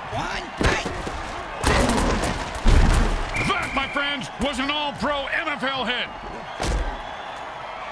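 Armored players crash together in heavy, thudding tackles.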